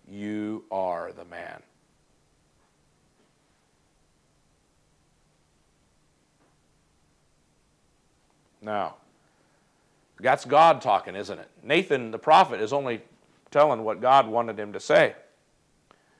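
A middle-aged man speaks calmly and close up through a clip-on microphone.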